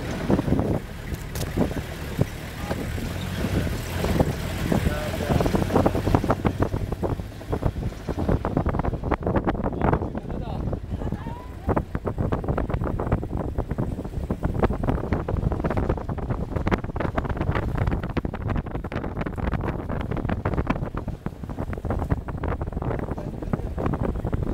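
The body of a vehicle rattles and knocks over bumps.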